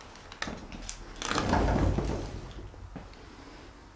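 A sliding window rattles as it is pushed.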